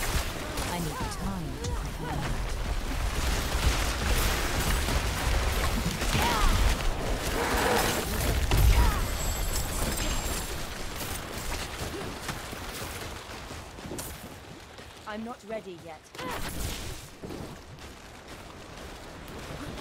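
Magic spells crackle and burst in rapid bursts.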